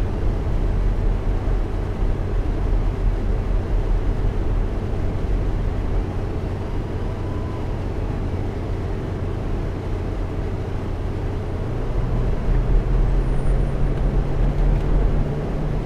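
A bus engine hums steadily and rises in pitch as the bus speeds up.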